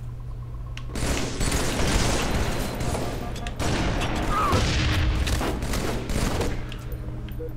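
Gunfire and explosions crackle loudly in a fight.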